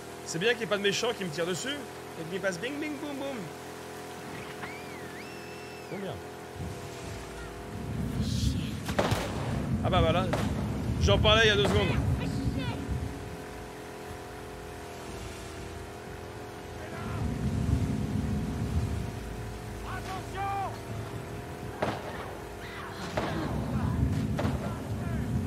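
A boat's motor hums steadily.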